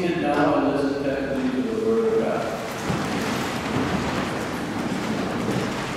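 People sit down on wooden pews with shuffling and creaking.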